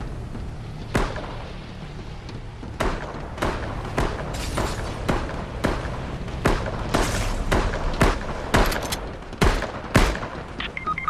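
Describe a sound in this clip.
Building pieces clatter and thump into place in quick bursts.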